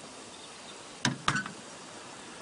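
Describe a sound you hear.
A metal utensil clinks against a pan.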